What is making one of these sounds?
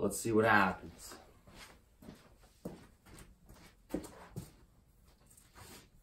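Footsteps shuffle across a hard floor.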